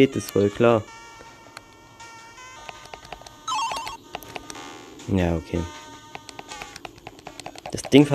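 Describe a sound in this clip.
Tinny electronic game music plays with a bouncy melody.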